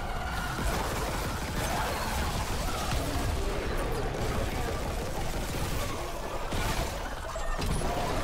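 Gunfire crackles and bangs in rapid bursts.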